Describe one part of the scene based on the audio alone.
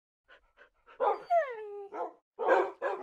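A dog whines with a falling pitch.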